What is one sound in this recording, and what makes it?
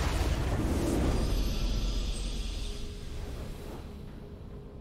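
A loud triumphant fanfare bursts out with a deep boom and then fades.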